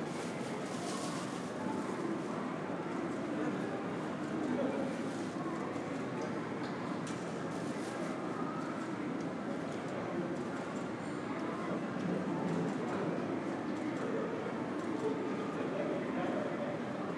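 Distant voices murmur in a large echoing hall.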